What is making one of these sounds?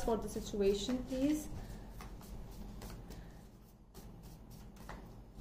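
Playing cards riffle and slap as a deck is shuffled.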